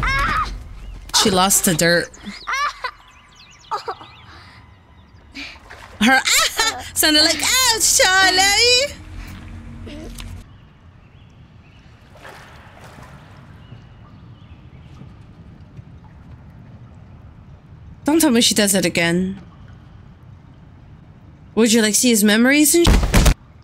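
A young woman talks excitedly into a close microphone.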